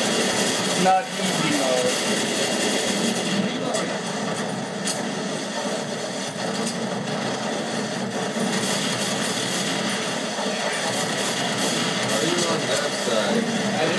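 Gunfire rattles in short bursts.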